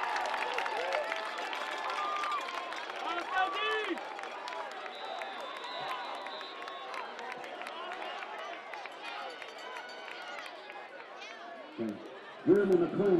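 A crowd of spectators cheers and talks outdoors.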